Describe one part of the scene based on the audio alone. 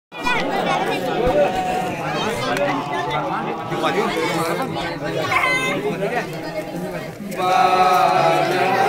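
A crowd of men chatter loudly nearby.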